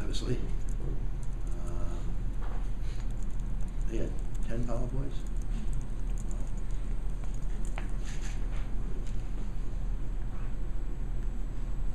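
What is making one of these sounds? Sheets of paper rustle in a man's hands.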